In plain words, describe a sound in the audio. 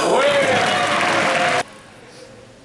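A crowd of spectators claps and cheers in a large echoing hall.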